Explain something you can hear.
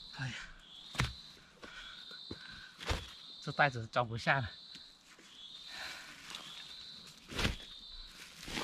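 Bamboo shoots thud as they drop into a sack.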